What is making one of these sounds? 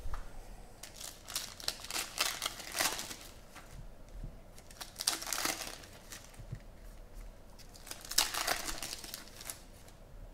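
Foil wrappers crinkle and tear as packs are ripped open.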